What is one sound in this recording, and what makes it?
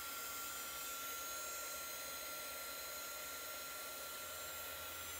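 A heat gun blows with a steady loud whirring hiss.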